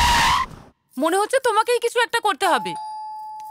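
A middle-aged woman speaks loudly and with animation.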